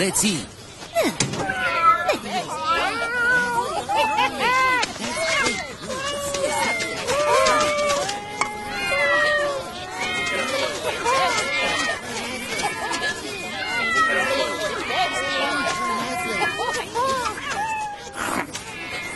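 Many cats meow together in a singing chorus.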